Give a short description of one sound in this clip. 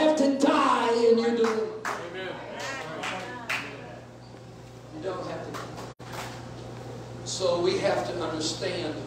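A middle-aged man speaks with animation into a microphone, heard through loudspeakers in a large echoing hall.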